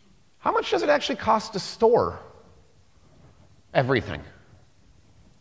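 A man speaks through a microphone, presenting with pauses.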